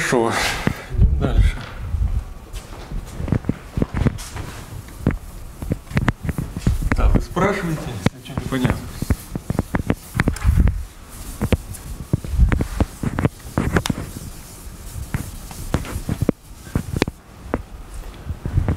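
A man lectures calmly in a room with a slight echo.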